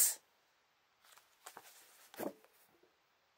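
A paper sheet rustles as it is moved.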